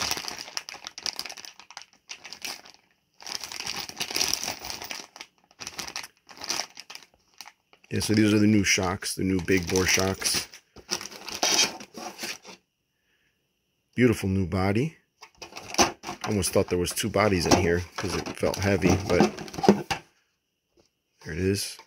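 Plastic bags crinkle and rustle in a hand.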